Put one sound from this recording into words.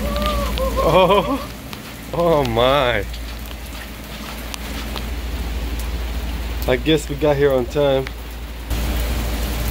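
Rain patters steadily on pavement outdoors.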